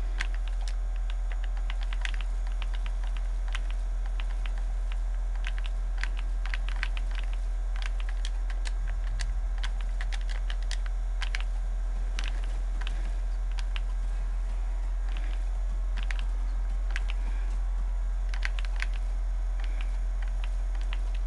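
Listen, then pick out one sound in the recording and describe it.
Game building pieces snap into place with quick sharp clicks.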